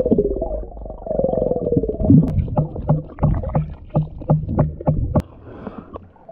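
Water gurgles and knocks, muffled as if heard underwater.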